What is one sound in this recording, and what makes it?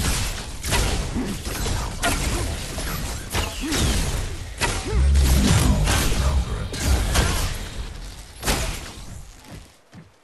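Gunfire and explosions crack and boom rapidly in a game.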